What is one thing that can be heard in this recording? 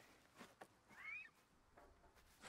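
A bird of prey gives a short cry.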